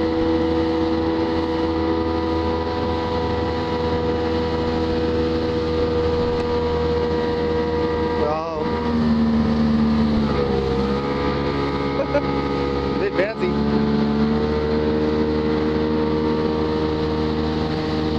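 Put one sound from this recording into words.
A motorboat engine drones steadily close by, its pitch shifting a little now and then.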